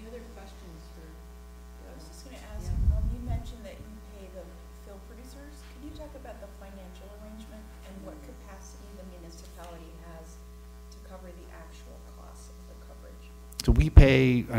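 An older woman speaks calmly and faintly through a microphone.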